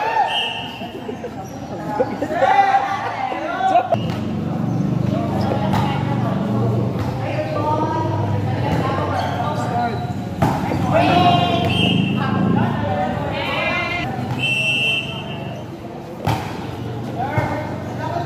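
A crowd of young people shouts and cheers.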